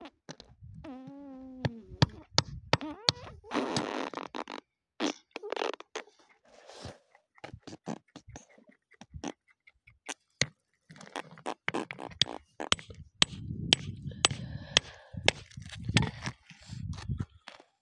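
Loose gravel crunches under a hand.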